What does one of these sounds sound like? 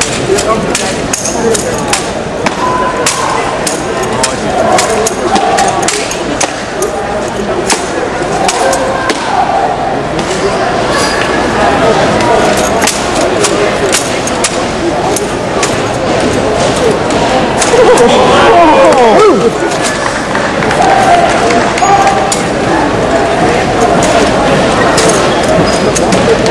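A rifle slaps sharply against hands again and again in a large echoing hall.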